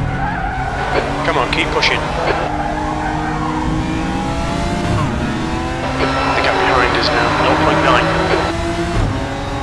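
Tyres squeal on the track.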